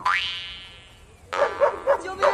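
A mouth harp twangs briefly.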